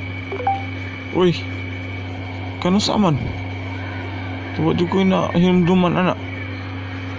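A second man answers in a flat, synthetic computer voice.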